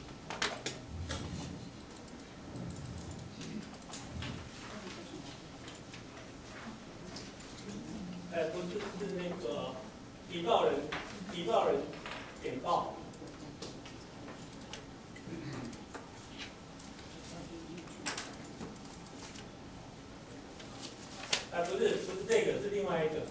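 A middle-aged man speaks through a microphone in a room, pausing often.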